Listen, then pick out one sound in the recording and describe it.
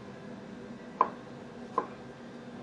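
A knife knocks sharply on a wooden board as it cuts through a shallot.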